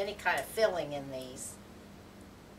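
An elderly woman speaks calmly nearby.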